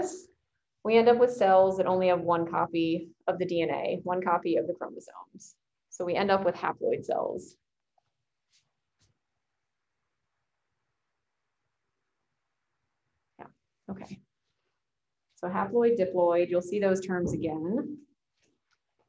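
A woman speaks calmly through a microphone over an online call.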